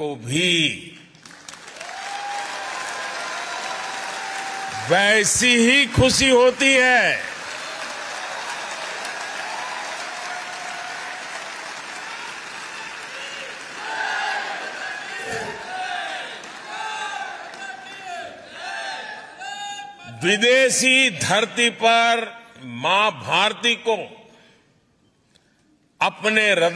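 An elderly man speaks with animation through a microphone in a large hall.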